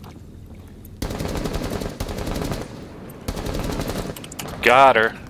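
A rifle fires rapid bursts of shots up close.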